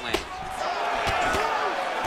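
A punch lands with a dull thud.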